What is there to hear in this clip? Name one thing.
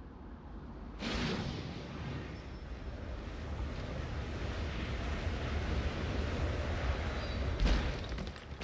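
Wind rushes loudly past during a long fall, growing stronger.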